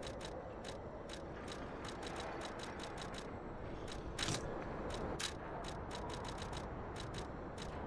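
Soft interface clicks tick quickly and repeatedly.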